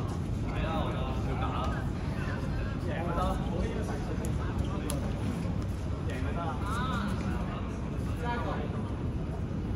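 Balls bounce and thud on a hard floor.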